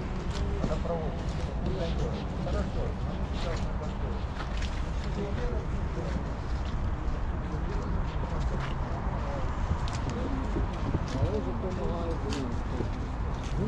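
Nearby people talk in a chattering murmur outdoors.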